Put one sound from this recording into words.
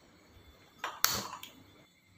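A gas lighter clicks.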